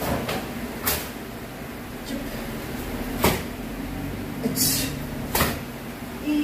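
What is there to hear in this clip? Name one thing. A karate uniform snaps sharply with each strike.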